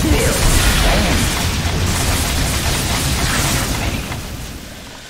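Magic blasts crackle and roar in a fierce fight.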